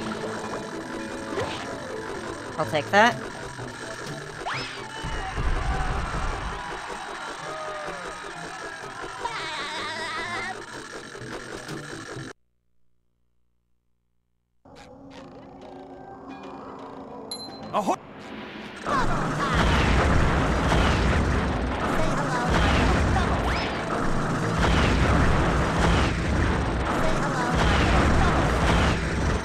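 Bubbles burble and pop in a video game.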